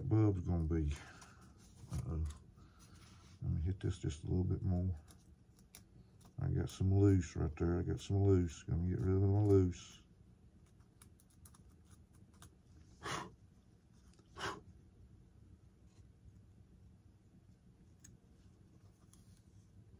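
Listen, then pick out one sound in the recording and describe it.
Plastic parts click and rustle in a man's hands.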